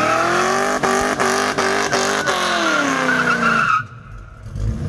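Tyres screech as they spin on pavement.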